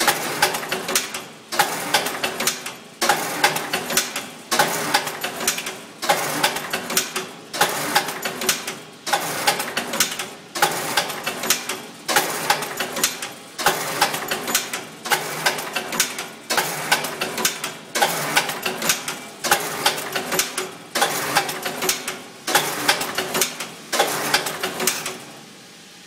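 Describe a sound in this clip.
A machine whirs and clatters in loud bursts that repeat every second and a half.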